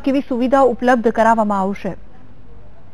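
A young woman speaks clearly and evenly into a microphone.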